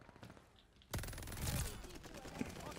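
An automatic rifle fires a burst.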